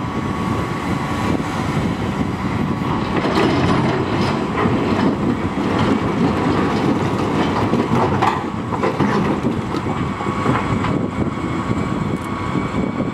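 A large excavator's diesel engine rumbles steadily.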